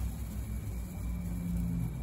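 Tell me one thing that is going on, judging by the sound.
Seeds pour from a paper plate into a sieve.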